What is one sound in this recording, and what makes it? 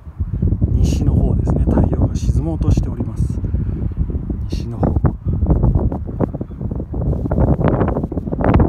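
Wind blows strongly across an open outdoor space, buffeting the microphone.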